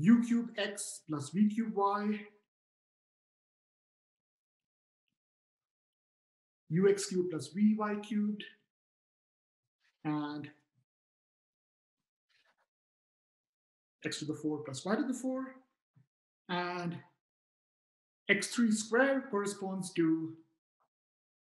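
A man speaks calmly into a microphone, explaining in short bursts with pauses, as if over an online call.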